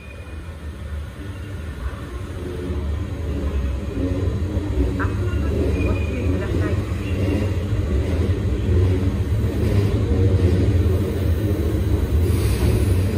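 A train idles at a platform with a low, steady hum that slowly grows louder.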